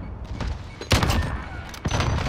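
A rifle fires a loud single shot.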